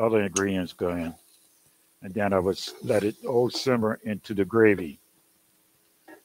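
A metal utensil clinks against a pan.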